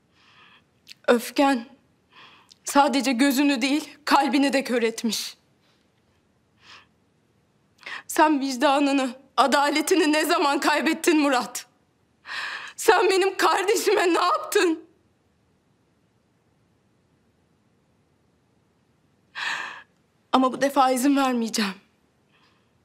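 A woman speaks with strong emotion, close by.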